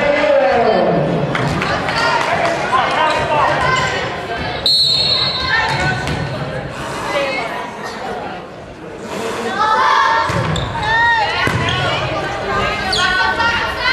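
Young women shout and call to each other in a large echoing gym.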